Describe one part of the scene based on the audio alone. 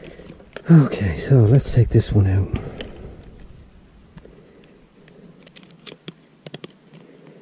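A cardboard and plastic package crinkles and rustles in someone's hands.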